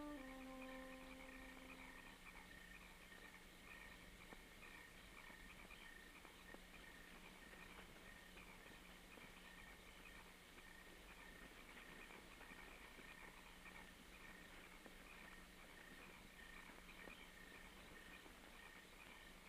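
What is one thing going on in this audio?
A woman's footsteps fall softly on grass.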